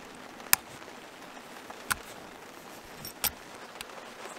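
A zipper pull clicks sharply.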